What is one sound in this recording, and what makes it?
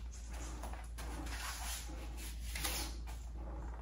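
A record sleeve rustles as a vinyl record slides out of it.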